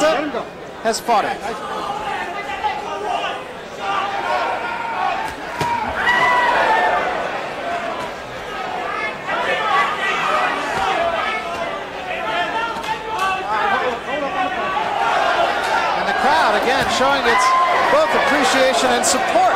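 A large crowd cheers and shouts in a big arena.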